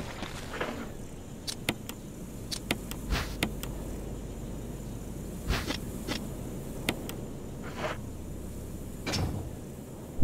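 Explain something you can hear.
Menu selections click sharply, one after another.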